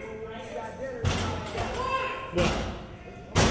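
A metal door rattles and clanks.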